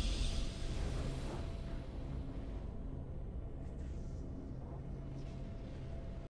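A triumphant game fanfare plays, booming and then settling into a low steady hum.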